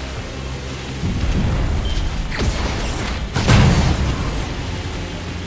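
Explosions boom from cannon fire.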